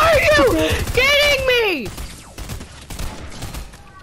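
A gun fires repeated shots.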